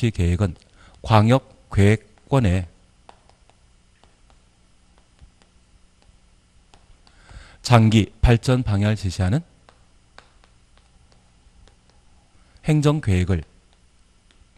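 A man speaks in short bursts into a close microphone, calmly explaining.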